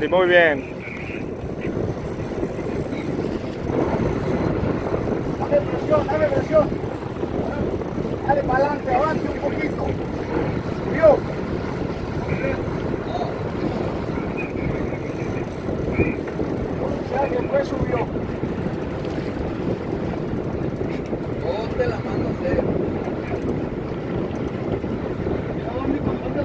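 Wind blows and waves wash steadily outdoors on open water.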